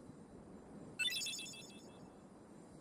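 A bright game chime rings out once.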